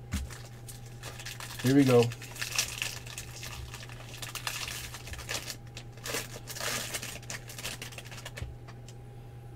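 A foil wrapper crinkles and tears as it is torn open.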